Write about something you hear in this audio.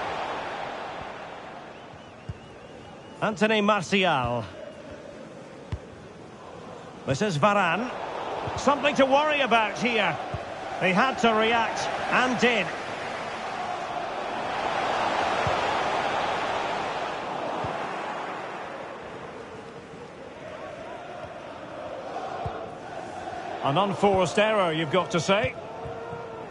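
A large crowd roars steadily in a stadium, swelling and fading.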